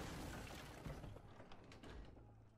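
A heavy wooden gate bursts open with a loud crash.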